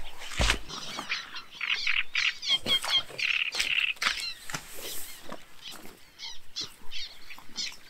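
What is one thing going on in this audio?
A heavy fabric cover rustles and flaps as it is draped over a frame.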